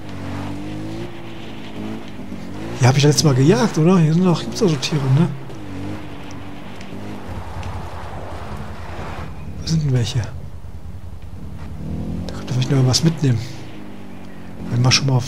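A quad bike engine hums steadily as the bike rolls along a rough dirt track.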